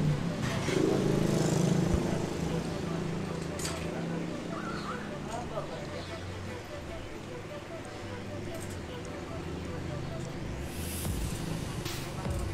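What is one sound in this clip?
A bicycle tire squeaks and rubs as hands work it onto a rim.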